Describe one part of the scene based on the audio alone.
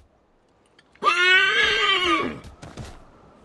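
A horse whinnies loudly.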